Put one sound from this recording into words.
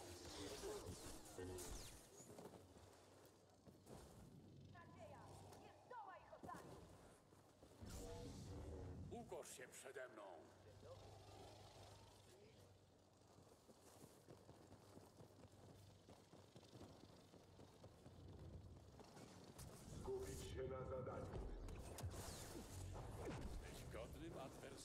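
Blaster shots zap and crack.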